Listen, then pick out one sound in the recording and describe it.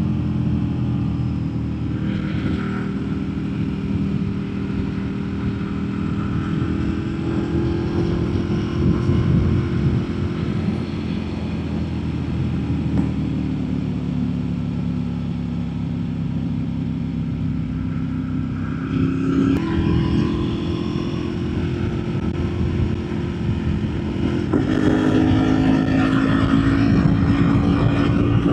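A motorcycle engine hums steadily, rising and falling in pitch as it shifts gears.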